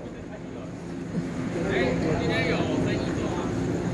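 A train rolls into a station.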